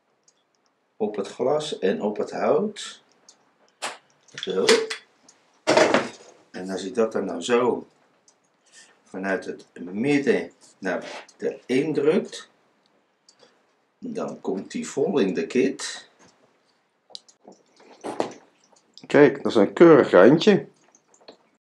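An elderly man talks calmly, close by.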